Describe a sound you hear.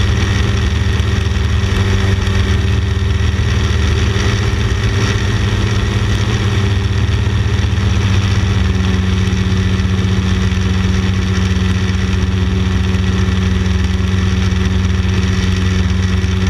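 Wind rushes and buffets past an open cockpit.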